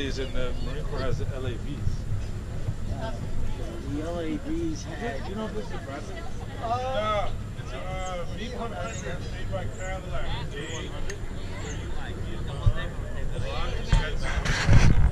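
Young children talk and call out nearby.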